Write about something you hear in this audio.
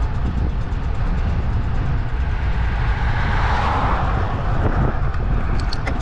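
A car approaches and swishes past close by.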